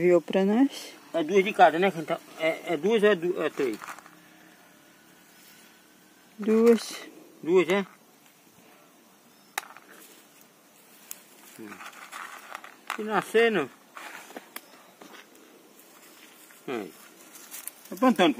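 Hands scrape and dig in dry soil.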